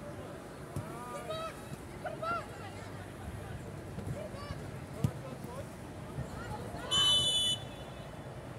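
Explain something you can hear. Boys shout to each other across an open field.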